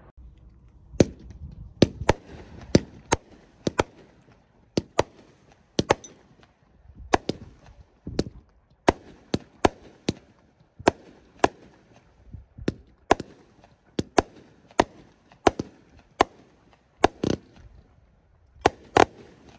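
Fireworks burst with sharp, echoing bangs, one after another.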